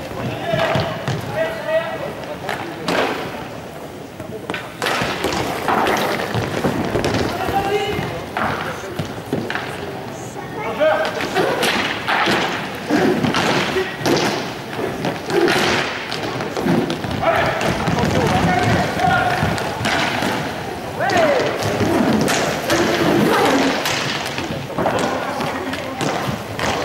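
Skate wheels roll and scrape across a hard floor in an echoing hall.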